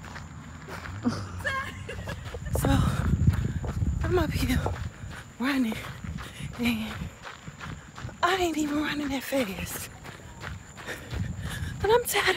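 A young woman talks breathlessly, close up.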